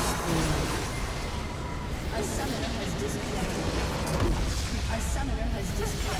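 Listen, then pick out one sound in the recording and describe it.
A game structure explodes and crumbles.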